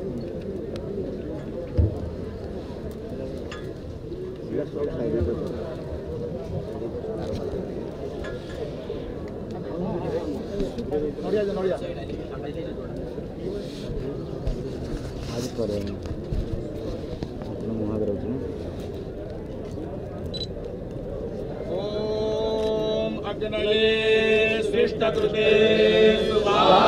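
A crowd of men murmur and chant nearby.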